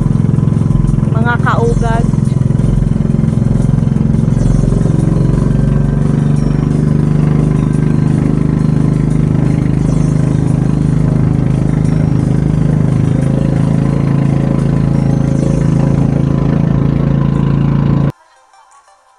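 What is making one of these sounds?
A boat's motor drones steadily up close.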